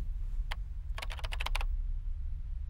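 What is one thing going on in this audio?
Fingers type quickly on a laptop keyboard.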